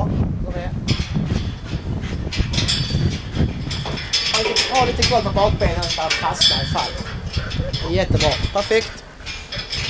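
Footsteps clang on metal stairs outdoors.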